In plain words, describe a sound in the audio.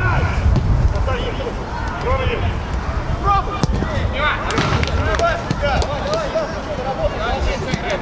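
Men on a pitch shout and call out to each other outdoors.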